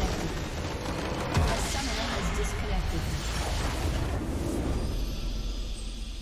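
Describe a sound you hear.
A large structure explodes with a deep rumbling blast.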